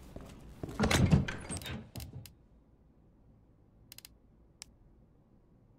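Short menu clicks and beeps sound.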